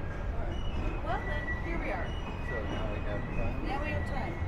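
Adults chat quietly nearby.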